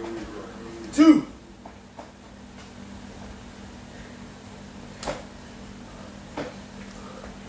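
A man's feet thump on the floor as he jumps and lands.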